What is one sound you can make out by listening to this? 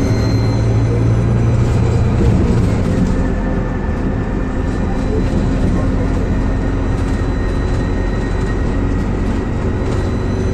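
A bus engine idles with a deep, steady rumble close by.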